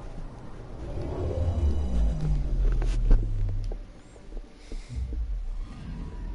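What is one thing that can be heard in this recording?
A spaceship engine rumbles low and fades.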